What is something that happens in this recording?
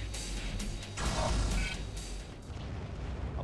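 A laser weapon fires with a buzzing burst.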